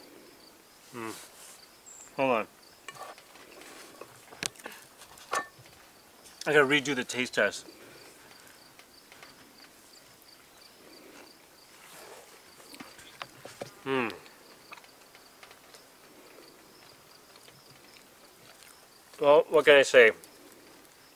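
A man speaks casually in short bursts, close by.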